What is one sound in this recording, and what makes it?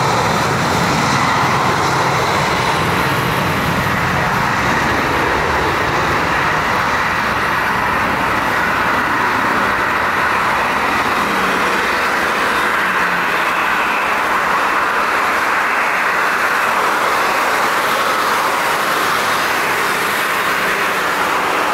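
Spray hisses off a wet runway under the plane's wheels.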